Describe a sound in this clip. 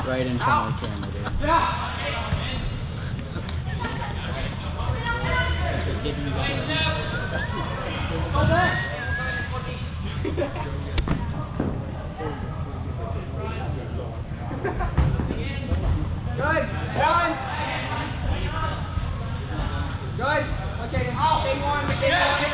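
Young players shout and call out to each other across a large echoing indoor hall.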